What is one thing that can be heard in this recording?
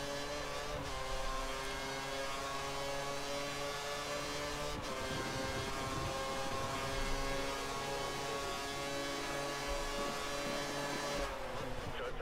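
A racing car engine screams at high revs, its pitch climbing as it speeds up.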